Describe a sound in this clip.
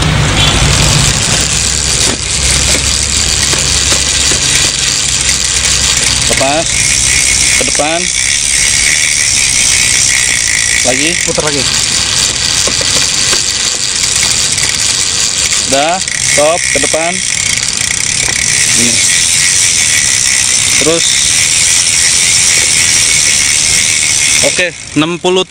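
A bicycle part clicks and rattles as it is worked on.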